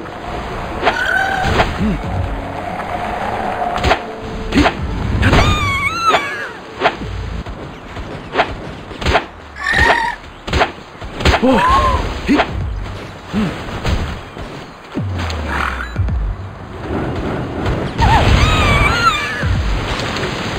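Game creatures cry out in high, bending squeals.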